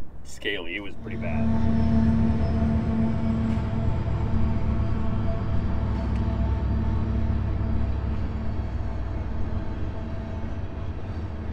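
A freight train rumbles steadily past at a distance.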